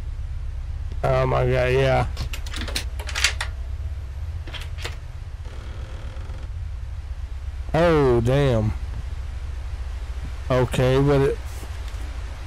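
A middle-aged man talks into a close microphone with animation.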